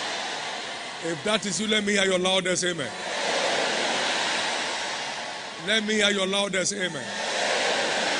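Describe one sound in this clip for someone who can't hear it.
A man speaks loudly through a loudspeaker in a large echoing hall.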